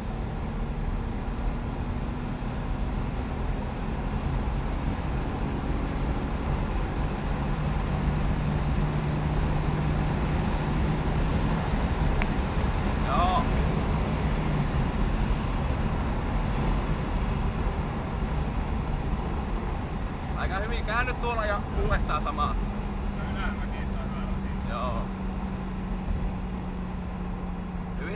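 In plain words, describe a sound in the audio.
A car engine drones and revs steadily.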